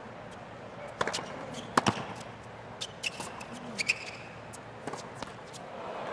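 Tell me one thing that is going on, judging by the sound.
Tennis balls are struck sharply back and forth with racquets.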